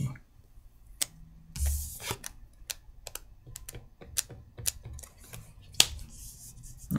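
Game cards and pieces click and tap on a table.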